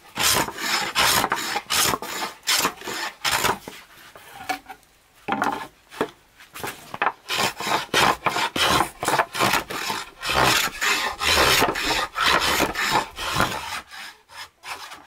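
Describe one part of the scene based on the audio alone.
A hand plane scrapes in quick strokes along a wooden board.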